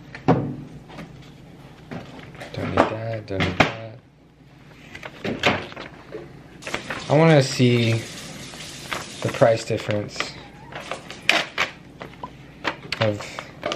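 Paper crinkles and rustles as it is handled.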